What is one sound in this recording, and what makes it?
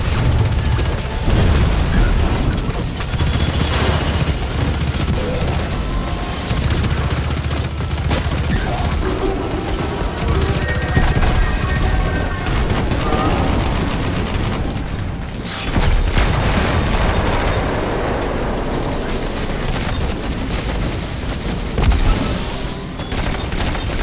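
Energy blasts and explosions boom loudly.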